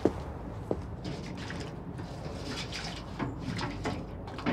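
Hands splash and swish through water in a metal bucket.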